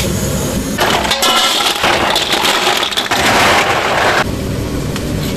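Ice cubes pour and clatter into water.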